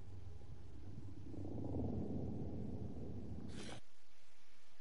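Video game sound effects rumble and clatter, then cut out abruptly.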